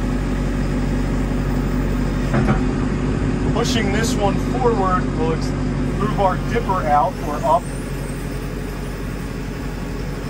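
A diesel engine idles steadily with a low rumble.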